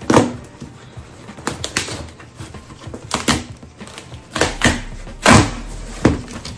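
A box cutter slices through cardboard tape with sharp scraping bursts.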